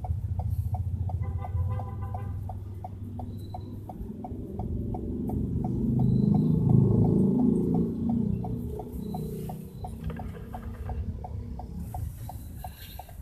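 Motorbikes ride past on a busy street.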